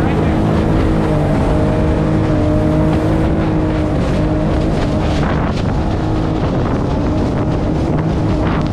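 A boat engine drones steadily at close range.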